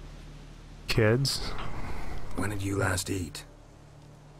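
A man asks a question in a low, calm voice.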